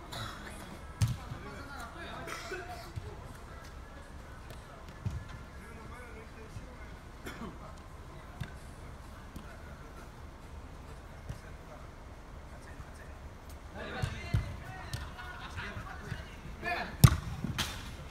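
A football thuds as players kick it in a large echoing hall.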